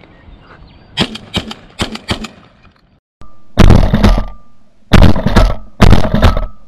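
A shotgun fires loud blasts outdoors.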